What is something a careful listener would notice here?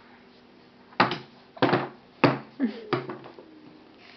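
A baby slaps its hands on a high chair tray.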